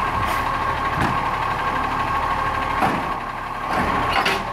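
A hydraulic arm on a garbage truck clanks as it lifts.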